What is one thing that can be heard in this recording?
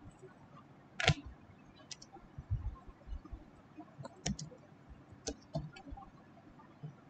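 Keys click on a keyboard.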